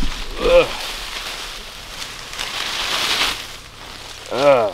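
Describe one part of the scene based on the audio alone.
Leafy branches rustle and swish.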